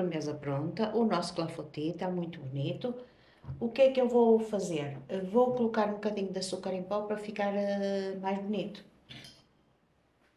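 An older woman talks calmly close by.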